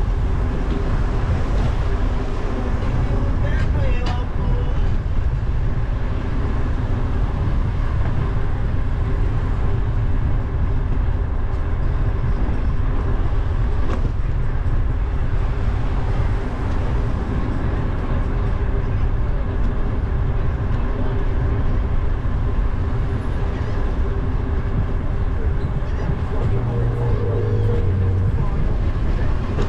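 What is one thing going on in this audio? Tyres roll steadily on asphalt.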